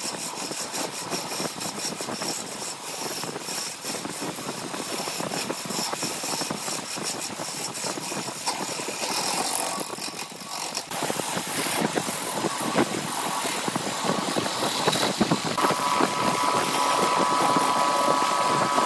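A wood lathe spins a wooden blank.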